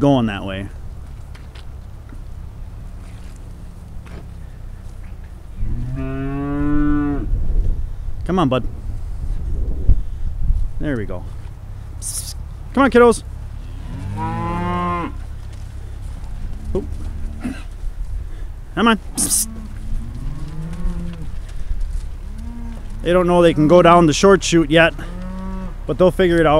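Cattle moo loudly and repeatedly close by.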